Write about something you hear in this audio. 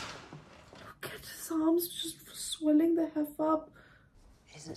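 A young woman speaks close by with emotion.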